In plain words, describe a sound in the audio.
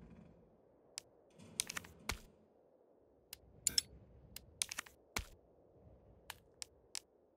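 Short menu clicks tick one after another.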